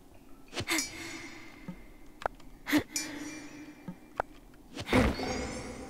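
A pickaxe strikes rock with sharp clinks.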